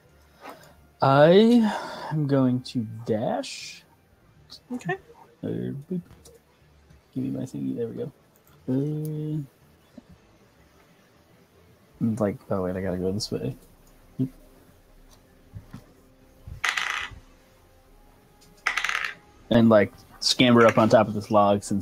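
Several men talk in turn over an online call, with animation.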